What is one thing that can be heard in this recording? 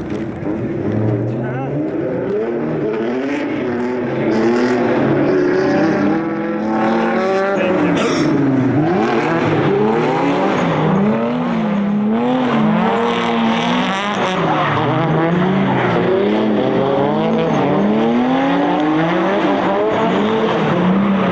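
Two racing car engines roar and rev up and down sharply, close by.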